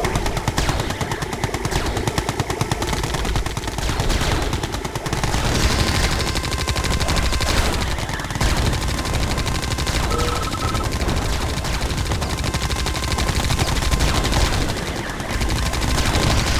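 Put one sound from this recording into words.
Weapons fire and explosions from a video game battle.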